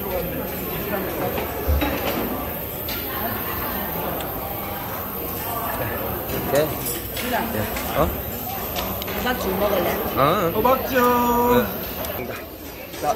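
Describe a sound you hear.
A busy crowd murmurs and chatters in the background.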